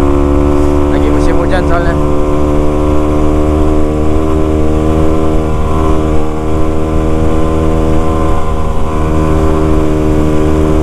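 A motorcycle engine hums steadily up close as the bike rides along.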